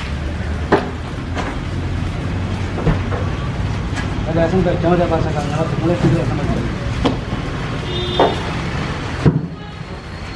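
Heavy stone slabs knock and scrape as they are shifted.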